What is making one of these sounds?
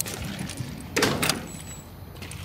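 A metal door opens.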